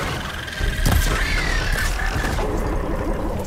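An arrow hits a target with a loud burst.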